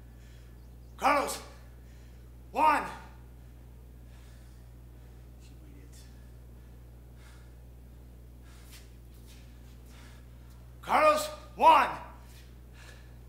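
A man shouts out loudly nearby, in short bursts.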